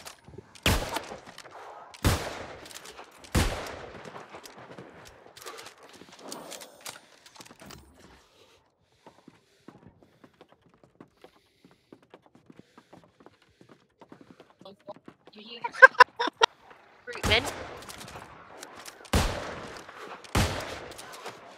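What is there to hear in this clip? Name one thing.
Heavy gunshots fire one at a time with a short echo.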